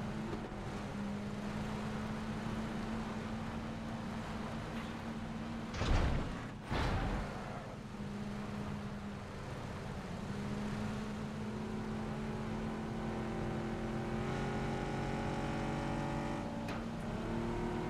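A truck engine drones steadily as the truck drives along.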